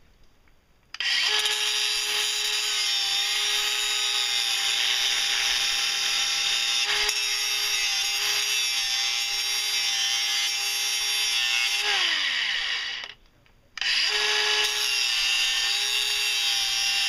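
A cordless angle grinder cuts through a metal tube.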